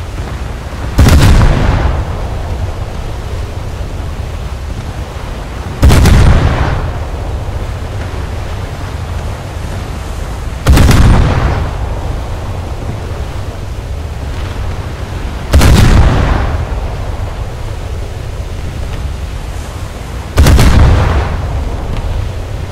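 Heavy naval guns fire booming shots at steady intervals, each one rumbling away.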